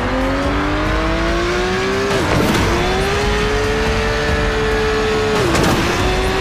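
A racing car engine roars, rising in pitch and dropping sharply as it shifts gears.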